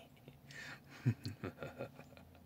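A young man laughs softly.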